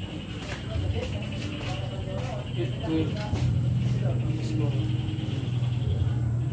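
Men talk nearby in the background.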